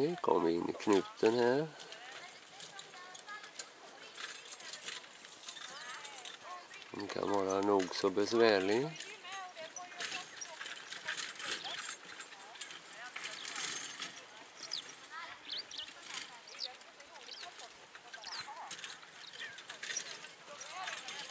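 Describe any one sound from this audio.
A horse trots on soft sand in the distance.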